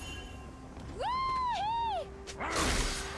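A bright chime rings out for a kill.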